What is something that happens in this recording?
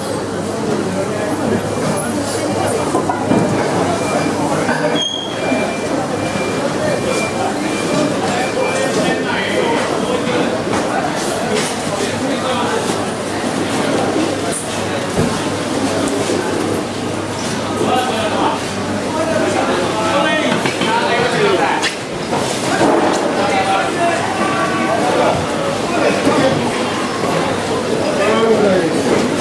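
A crowd of people chatters all around in a busy, echoing indoor space.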